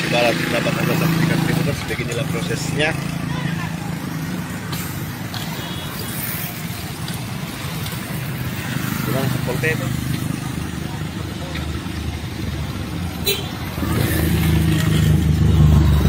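Small motorcycles ride past close by.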